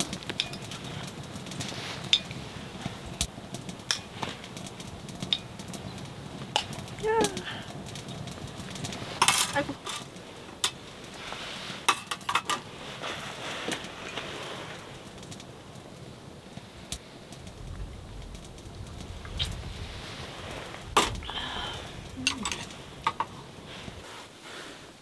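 Wood crackles in a stove.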